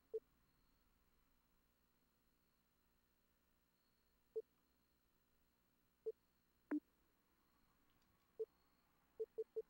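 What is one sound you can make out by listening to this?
Short, soft menu beeps sound one at a time as a selection moves up and down a list.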